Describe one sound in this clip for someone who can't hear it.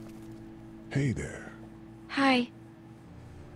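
A young girl speaks softly and hesitantly.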